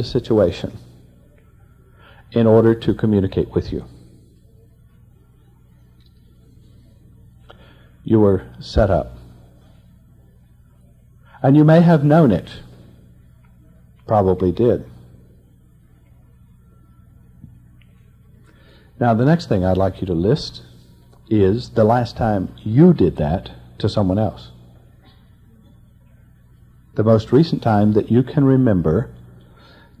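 An elderly man speaks calmly in short phrases with long pauses.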